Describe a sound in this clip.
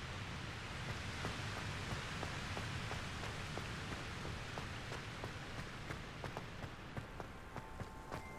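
Quick footsteps run across stone paving.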